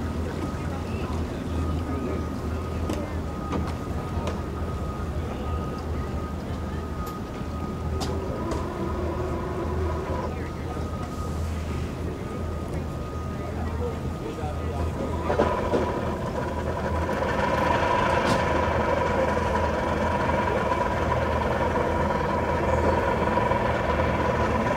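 Several men and women talk quietly at a distance, outdoors.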